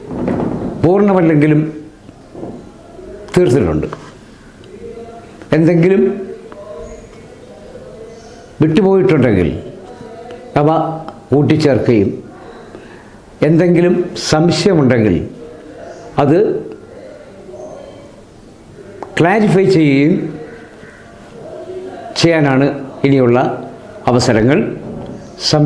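An elderly man speaks calmly and clearly into a nearby microphone, in short phrases with pauses.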